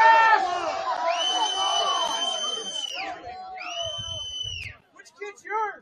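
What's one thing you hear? A referee's whistle blows sharply several times.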